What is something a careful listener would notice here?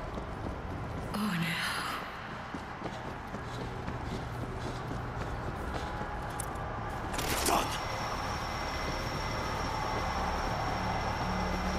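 Footsteps hurry across hard ground.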